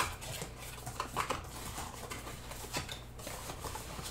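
Cardboard box flaps are pulled open.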